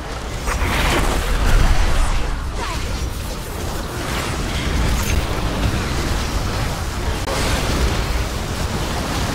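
Video game magic spell effects whoosh and burst in a battle.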